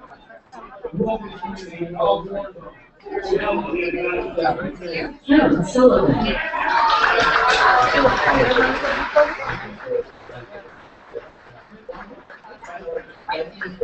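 A crowd chatters in a noisy room.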